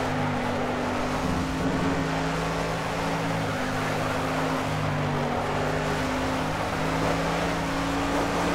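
Tyres hiss and rumble on the track.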